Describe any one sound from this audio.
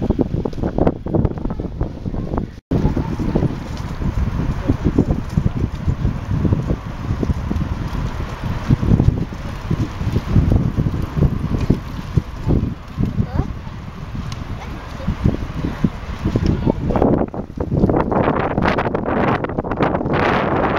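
Bicycle tyres roll on a paved road.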